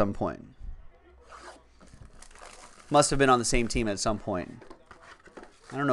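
Plastic wrap crinkles as a box is unwrapped.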